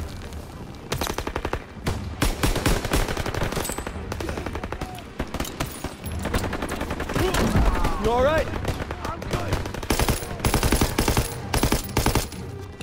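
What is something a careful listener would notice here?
A rifle fires rapid bursts of gunshots.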